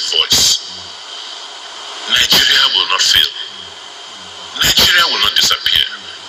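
An elderly man speaks loudly into a microphone, heard through loudspeakers in an echoing room.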